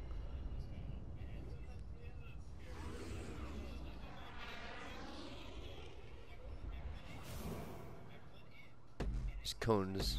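A bicycle rolls over concrete.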